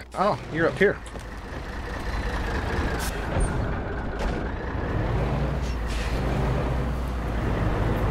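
A truck engine rumbles steadily up close.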